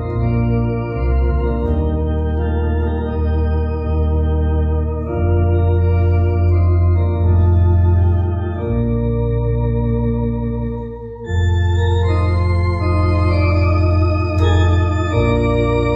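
An electronic organ plays sustained chords with a deep bass line.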